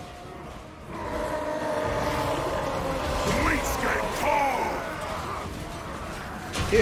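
Armies clash in battle with a roaring din of clanging weapons.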